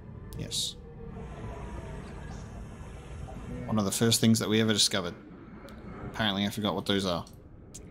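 Water bubbles and rumbles underwater.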